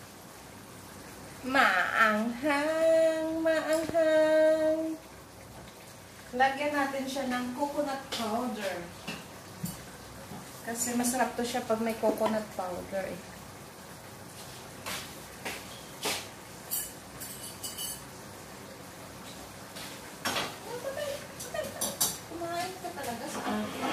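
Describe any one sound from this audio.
Oil sizzles softly in a frying pan.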